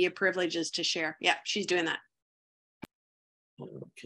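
A second middle-aged woman speaks calmly over an online call.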